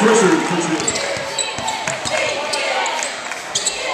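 A basketball bounces on a hardwood court.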